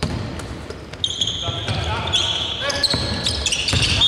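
Basketball shoes squeak on a hardwood court in a large echoing empty arena.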